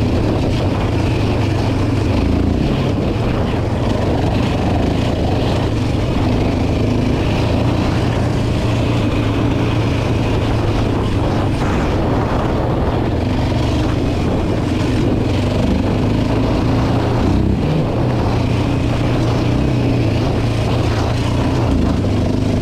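A quad bike engine drones steadily up close, rising and falling as it revs.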